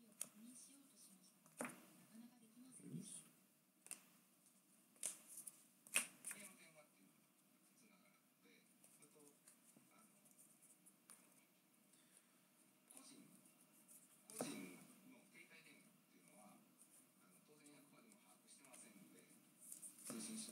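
Trading cards rustle and slide against each other as they are shuffled by hand.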